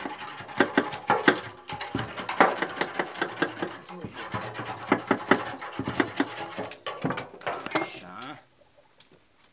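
A knife scrapes along the rim of a metal still.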